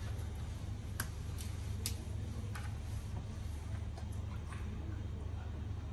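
A plastic bottle crinkles and knocks as it is handled.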